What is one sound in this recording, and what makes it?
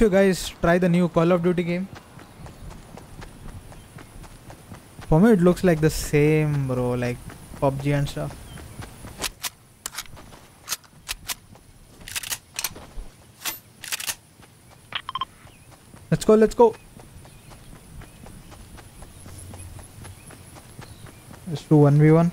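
Footsteps patter quickly over grass.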